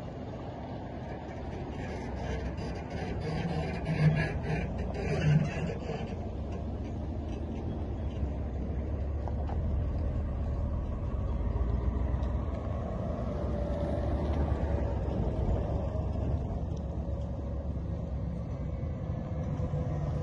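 Car engines rumble steadily as vehicles drive past close by.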